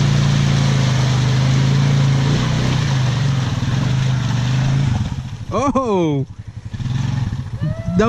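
Muddy water splashes under an all-terrain vehicle's tyres.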